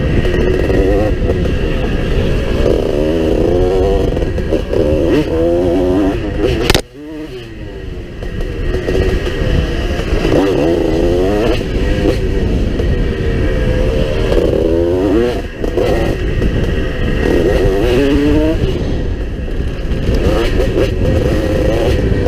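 Wind rumbles against a microphone.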